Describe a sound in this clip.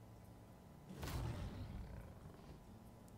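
A fiery game effect bursts with a low rumble.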